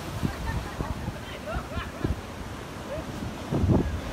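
Waves break and wash onto a beach.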